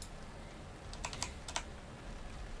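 Short clicks sound as a game menu opens.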